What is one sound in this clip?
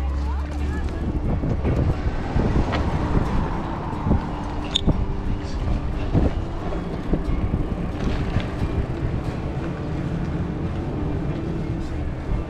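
Bicycle tyres roll and rattle over pavement.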